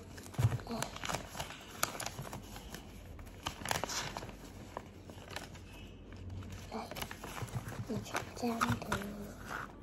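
A young girl talks softly up close.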